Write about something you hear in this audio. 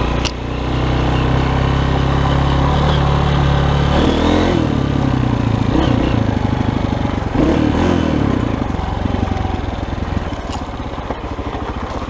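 Tyres crunch over a rough dirt trail.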